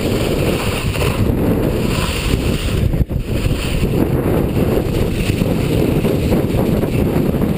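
Skis scrape and hiss over packed snow.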